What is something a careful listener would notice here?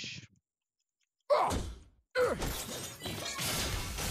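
Game weapons clash and whoosh in a fight.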